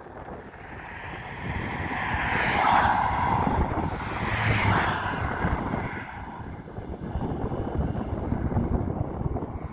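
A car drives away along a road.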